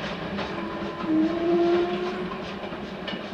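A steam whistle blows briefly in the distance.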